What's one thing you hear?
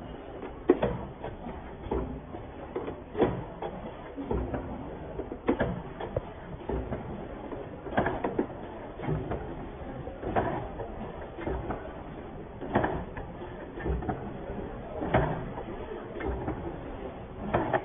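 Machine parts clack and thump in a regular rhythm.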